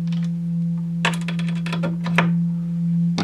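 A synthesizer plays a quick burst of clicking, percussive pulses.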